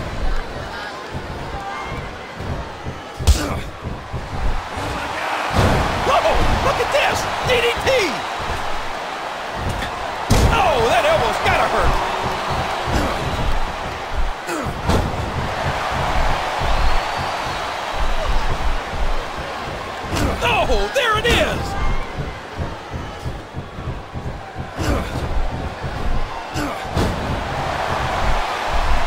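A crowd cheers and roars throughout.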